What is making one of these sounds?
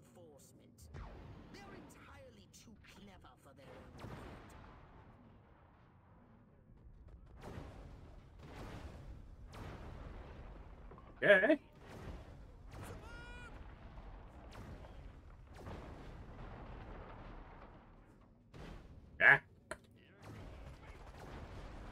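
Laser beams fire with a humming buzz.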